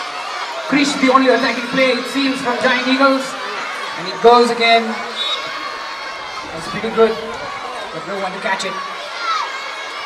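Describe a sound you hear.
A crowd of young children shouts and cheers outdoors.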